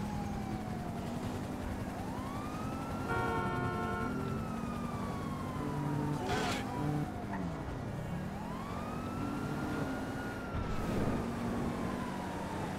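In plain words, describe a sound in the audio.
A car engine hums and revs up and down as it drives.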